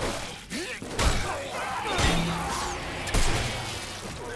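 Heavy blows and shots strike with loud thuds.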